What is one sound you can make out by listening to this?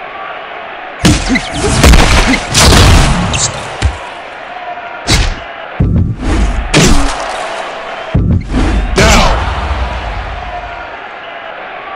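Punches land with heavy, booming thuds.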